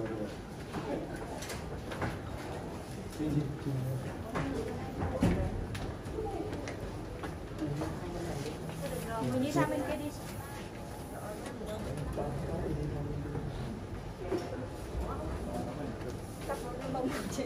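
Several men and women talk nearby.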